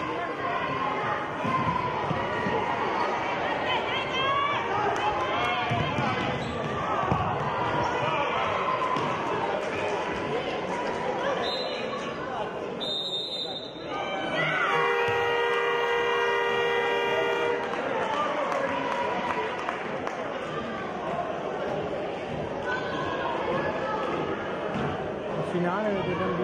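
Children shout and call out in an echoing sports hall.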